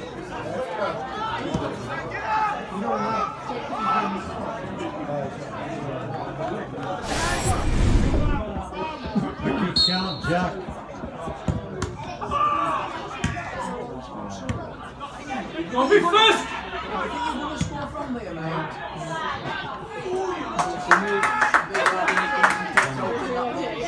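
Men talk and call out nearby in an outdoor crowd.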